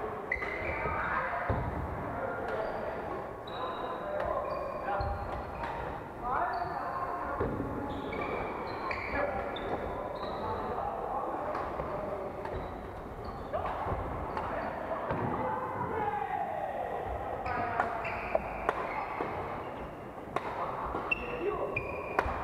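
Young people call out and chatter in a large echoing hall.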